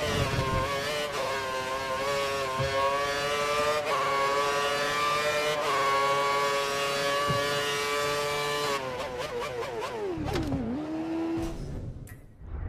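A racing car engine screams at high revs, its pitch jumping with each gear change and then dropping sharply.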